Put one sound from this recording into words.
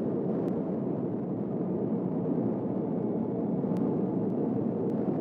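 A spacecraft engine rumbles steadily at a low pitch.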